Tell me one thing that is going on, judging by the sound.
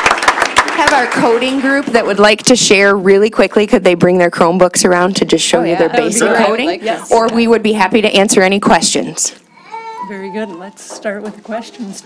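A middle-aged woman speaks into a microphone over a loudspeaker.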